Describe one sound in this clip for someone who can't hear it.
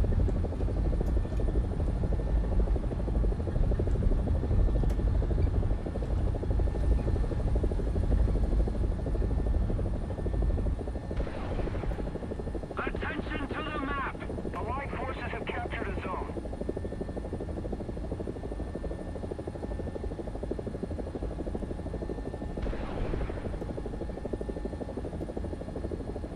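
A helicopter engine and rotor drone loudly, then grow somewhat quieter.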